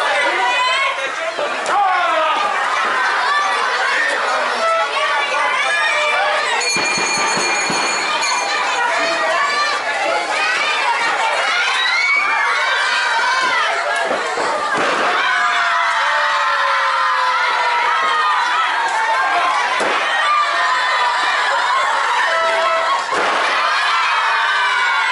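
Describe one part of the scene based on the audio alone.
A large outdoor crowd shouts and cheers loudly.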